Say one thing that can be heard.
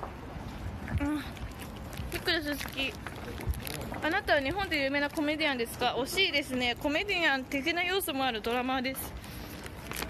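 A young woman talks close up with animation.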